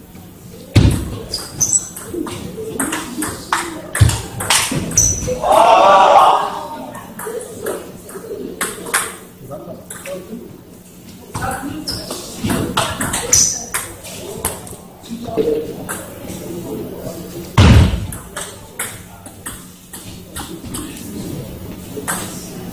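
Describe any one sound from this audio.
A table tennis ball clicks back and forth on paddles and a table.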